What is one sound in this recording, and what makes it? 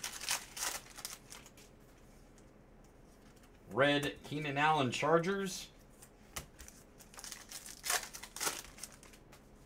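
Plastic wrappers crinkle and rustle in hands.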